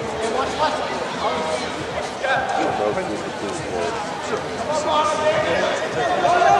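Several people shout and call out across a large echoing indoor hall.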